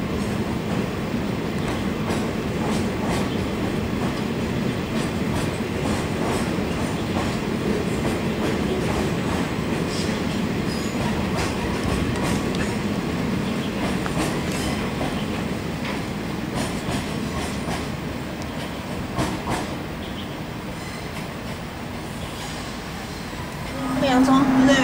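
A freight train rumbles along the tracks in the distance.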